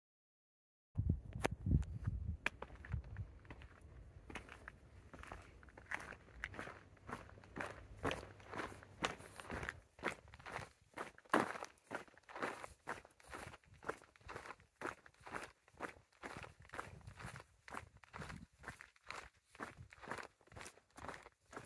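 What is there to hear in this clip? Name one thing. Footsteps crunch on a gritty paved path.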